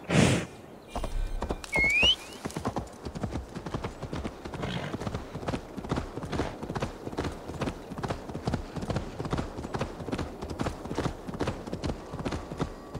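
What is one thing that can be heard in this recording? A horse's hooves gallop steadily on a dirt path.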